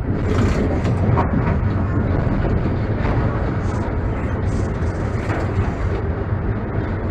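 Tram wheels clatter over the rail joints.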